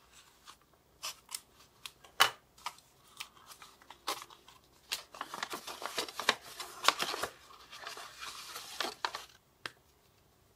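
Paper crinkles and rustles as it is unfolded close by.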